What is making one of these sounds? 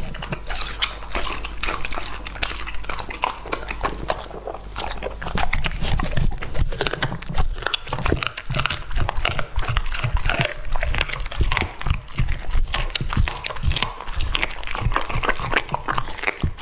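A dog licks and slurps wet food.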